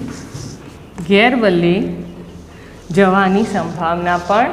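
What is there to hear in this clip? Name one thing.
A woman speaks clearly and calmly, close by.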